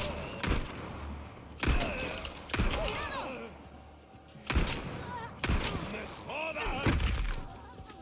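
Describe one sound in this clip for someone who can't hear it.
A pistol fires several loud, sharp shots.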